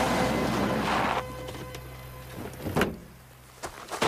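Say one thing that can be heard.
A van door opens with a click.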